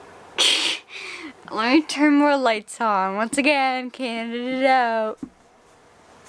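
A young woman speaks excitedly in a high, sing-song voice close to the microphone.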